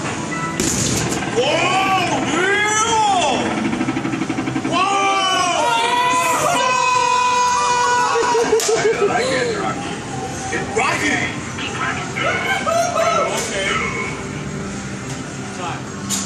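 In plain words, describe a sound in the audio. Arcade machines play loud electronic jingles and beeping tones.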